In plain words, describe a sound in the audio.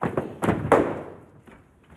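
Footsteps thud quickly across a wooden floor.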